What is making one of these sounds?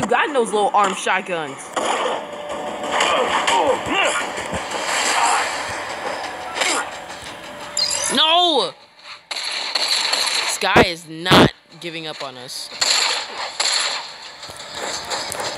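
Punches land with heavy thuds in a video game fight.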